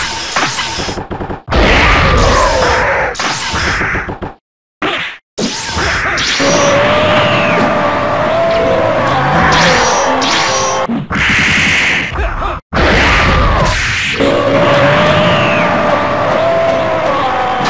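Energy blasts roar and crackle in bursts.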